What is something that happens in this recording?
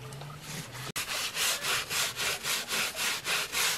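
A hand scrubs briskly and rhythmically against wet rubber.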